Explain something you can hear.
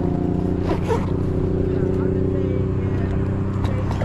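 A zipper is pulled open on a case.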